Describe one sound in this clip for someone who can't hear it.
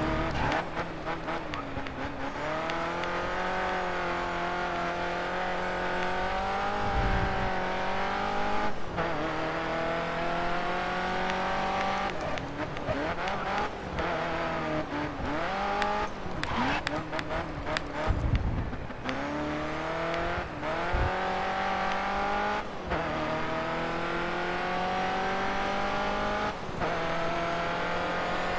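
A racing car engine roars, rising in pitch as it speeds up and dropping sharply at each gear change and braking.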